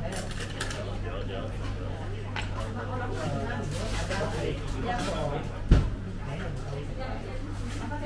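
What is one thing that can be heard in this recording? Chopsticks and a spoon clink against a bowl.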